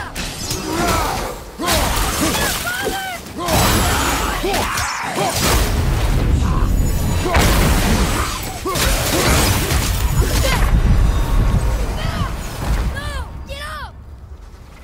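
Weapons clash and heavy blows thud in a fierce fight.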